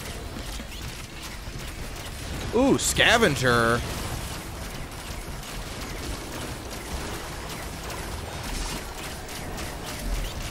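Game weapons fire and zap in rapid bursts.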